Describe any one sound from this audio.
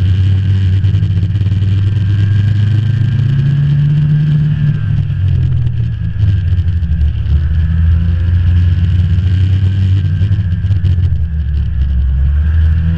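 A snowmobile's track rumbles over packed snow.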